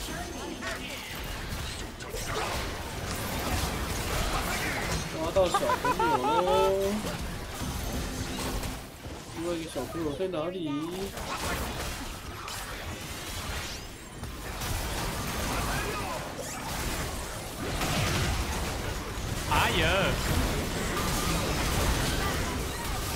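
Fast battle sound effects burst, whoosh and crackle throughout.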